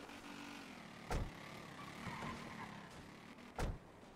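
A car door opens with a clunk.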